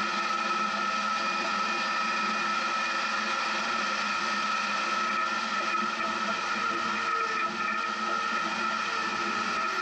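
An engine hums steadily as a vehicle drives along.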